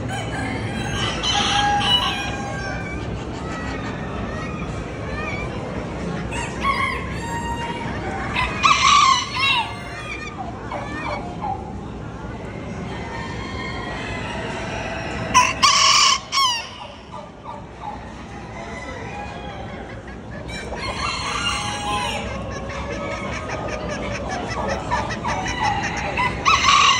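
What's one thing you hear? Roosters crow loudly in a large echoing hall.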